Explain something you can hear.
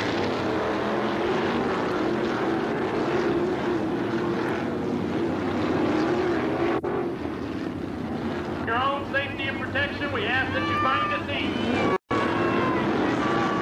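Racing car engines roar loudly.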